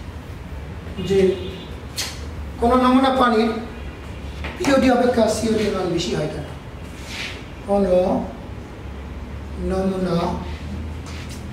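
A man speaks in short phrases, close by.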